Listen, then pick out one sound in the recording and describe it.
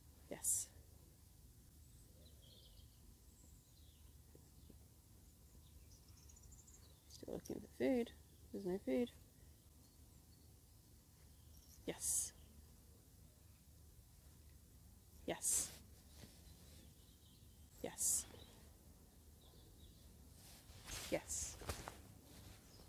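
A woman speaks briefly and warmly, in short bursts.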